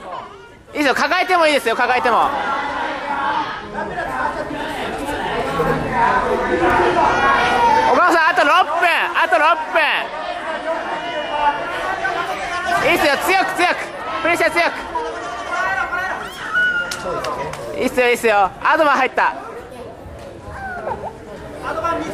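Men and women shout encouragement loudly from nearby in an echoing hall.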